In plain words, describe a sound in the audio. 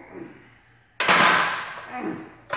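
A barbell clanks down onto a rack with a loud metallic crash.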